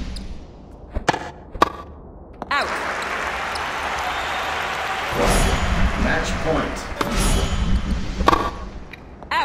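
A tennis ball is struck sharply by a racket several times.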